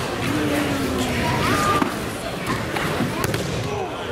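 A body thuds onto a mat.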